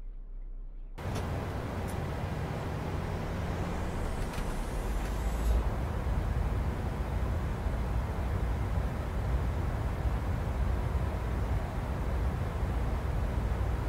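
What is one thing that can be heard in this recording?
Jet engines roar steadily with a low rumble.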